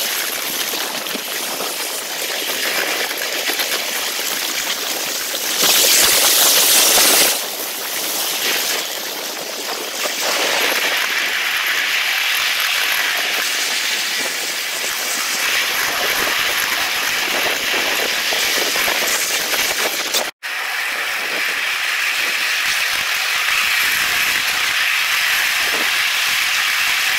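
A small train rumbles and clatters steadily along its rails.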